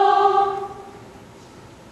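A choir sings a final held chord in a room with some echo.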